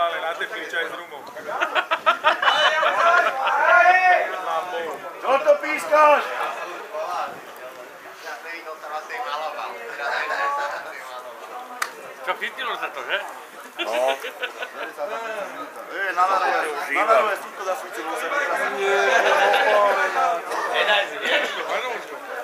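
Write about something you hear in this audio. Men talk close by with animation.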